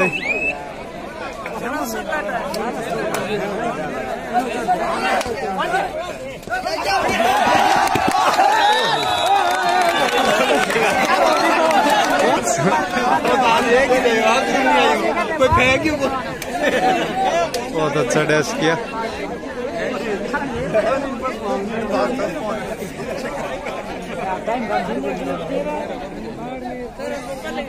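Men close by shout with excitement.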